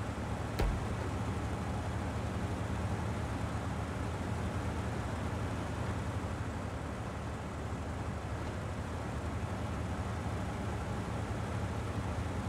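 A heavy truck engine rumbles steadily as the truck crawls forward.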